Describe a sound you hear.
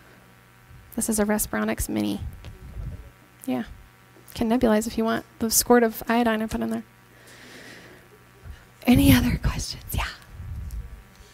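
A woman speaks calmly through a headset microphone.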